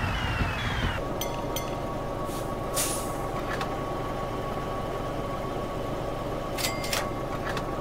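A truck engine idles with a steady hum.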